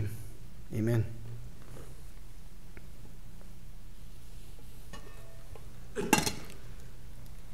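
A man speaks briefly and quietly into a microphone.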